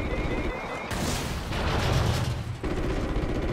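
A large blast roars and rumbles.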